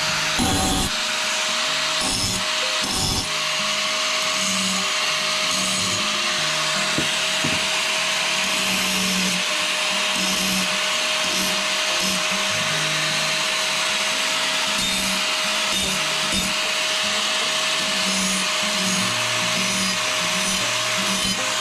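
An angle grinder whines steadily as it grinds metal.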